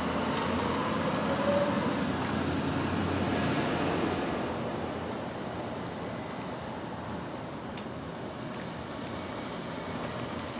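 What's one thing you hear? A car engine idles nearby outdoors.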